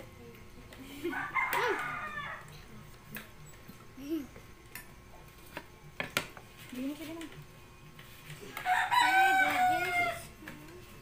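Young children talk and laugh close by.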